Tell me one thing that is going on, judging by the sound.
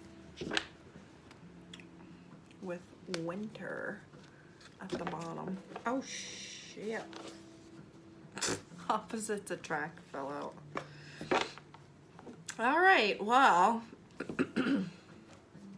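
Paper cards shuffle and rustle in a woman's hands.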